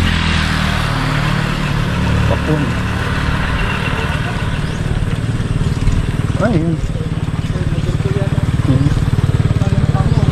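Another motorbike passes by on the road.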